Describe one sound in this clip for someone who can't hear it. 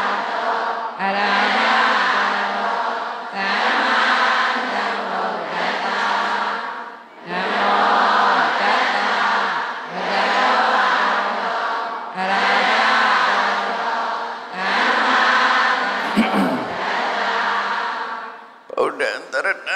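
An elderly man chants in a steady, drawn-out voice through a microphone.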